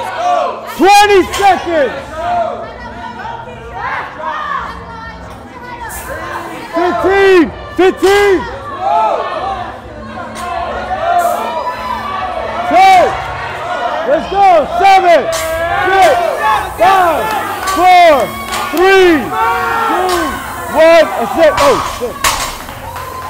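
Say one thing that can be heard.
Several men shout loud encouragement nearby, in rapid bursts.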